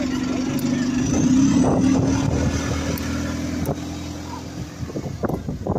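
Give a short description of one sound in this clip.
A bus engine revs up as the bus pulls away and fades.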